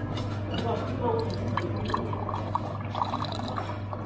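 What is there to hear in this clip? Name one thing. Juice pours splashing into a glass.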